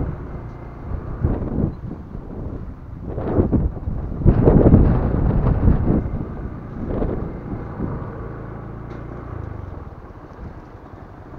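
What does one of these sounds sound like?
Tyres roll and crunch over a gravel path.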